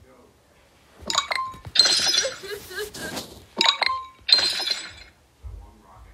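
Short electronic chimes and pops sound in quick bursts.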